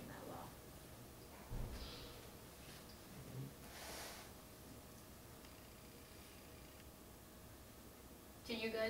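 A young woman speaks calmly at a short distance.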